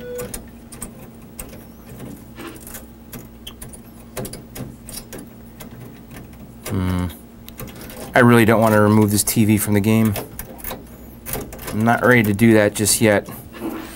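A knob clicks and scrapes as it is turned.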